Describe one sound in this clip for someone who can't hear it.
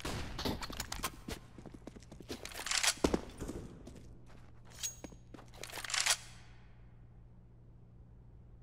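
A rifle is drawn with a metallic clack.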